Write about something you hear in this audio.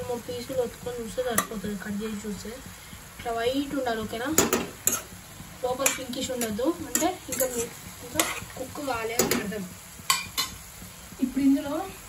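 A metal spoon scrapes and clinks against a frying pan.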